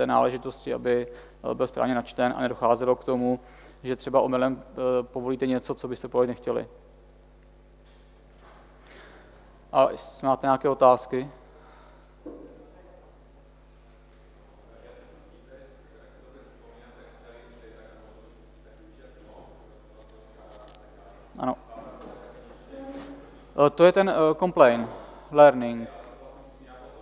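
A man speaks calmly into a microphone in a large room, heard with some echo.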